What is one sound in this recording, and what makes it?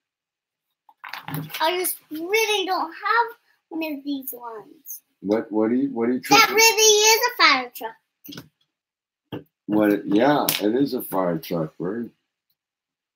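A young child talks with animation close by.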